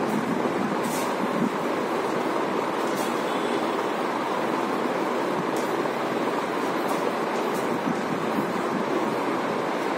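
Chalk taps and scratches on a board.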